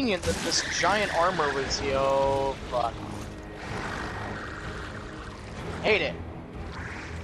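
A large creature shrieks with harsh, wavering cries.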